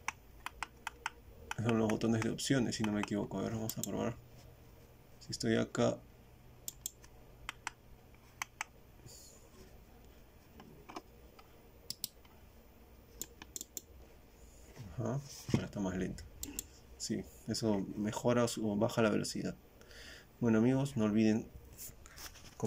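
Mouse buttons click sharply, now and then.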